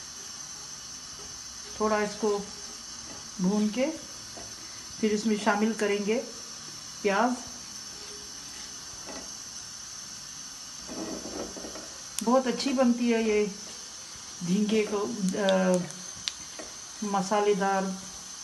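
A spatula scrapes across the bottom of a pan.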